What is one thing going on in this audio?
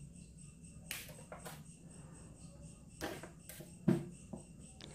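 Small tools click and tap against metal fittings.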